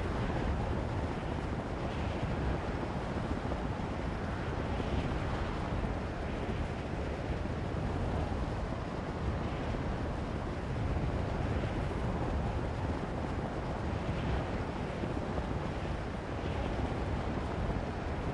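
Wind rushes steadily past a hang glider in flight.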